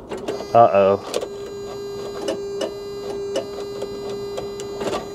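A vehicle engine starts and idles steadily with a ticking.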